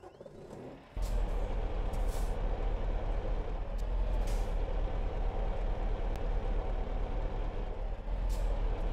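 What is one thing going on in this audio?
A truck engine rumbles steadily at idle.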